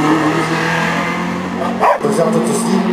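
A car engine roars as the car speeds away.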